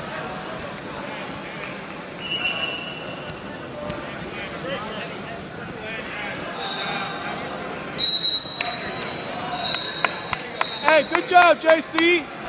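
Spectators shout and cheer in a large echoing gym.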